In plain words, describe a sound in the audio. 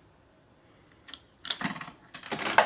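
A metal lever on a jukebox clanks and rattles.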